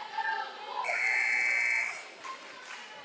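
A referee's whistle blows one long, sharp blast.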